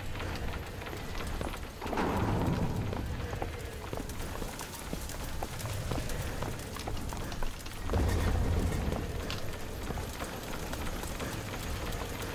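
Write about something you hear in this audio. Footsteps thud across wooden boards and stairs.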